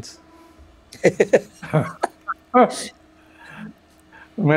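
Several men laugh over an online call.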